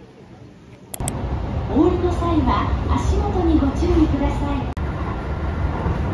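An electric commuter train rumbles along the track.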